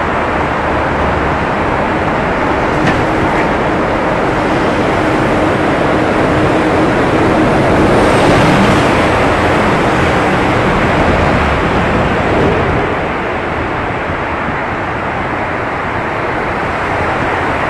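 Wind roars loudly past a moving vehicle in an echoing tunnel.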